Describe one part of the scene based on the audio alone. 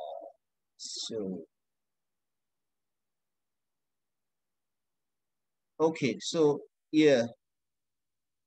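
A young man speaks calmly in short bursts, close to the microphone, as if on an online call.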